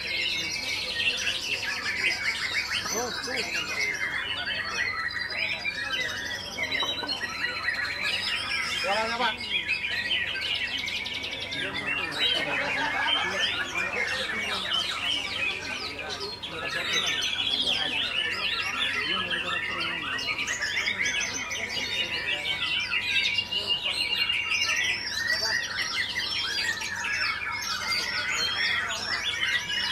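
A caged songbird sings loud, rapid, chattering phrases.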